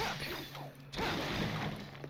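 Gunshots crack in quick succession.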